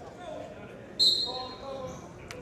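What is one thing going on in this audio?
A referee's whistle blows one sharp blast in an echoing gym.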